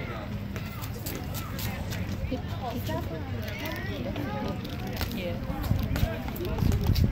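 Young players call out and chatter across an open field.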